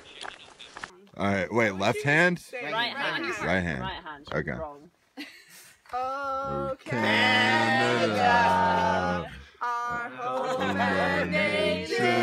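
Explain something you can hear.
A group of men and women sing together outdoors.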